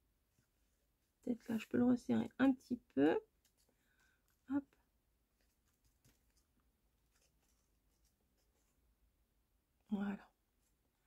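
Paper rustles softly as it is folded.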